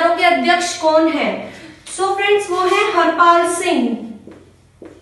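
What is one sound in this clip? A young woman speaks clearly and with animation, close by.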